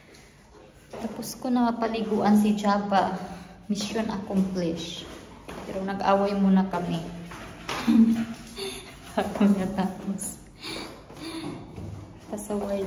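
A woman talks in a lively way, close to the microphone.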